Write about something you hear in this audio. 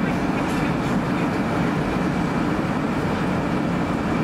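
A truck drives past.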